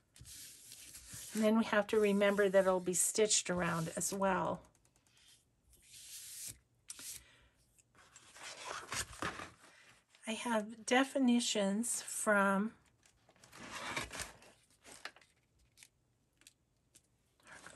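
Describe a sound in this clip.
Paper rustles and slides on a table.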